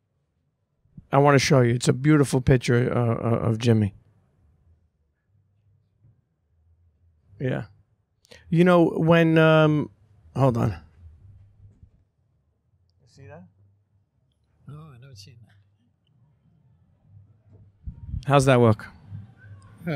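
A younger man speaks into a microphone with animation, close by.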